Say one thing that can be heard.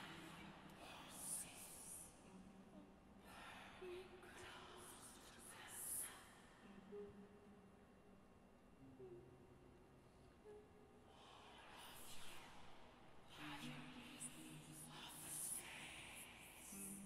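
A choir sings slow, held notes softly in a large, echoing hall.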